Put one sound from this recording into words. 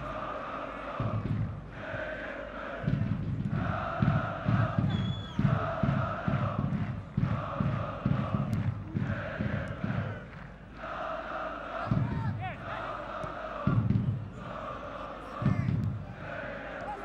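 A large stadium crowd chants and sings in rhythm.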